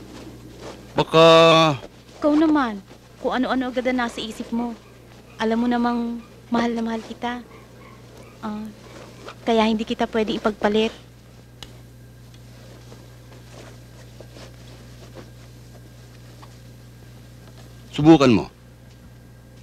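A man speaks softly and close by.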